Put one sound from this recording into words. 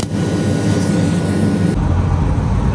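A cutting torch hisses and roars steadily.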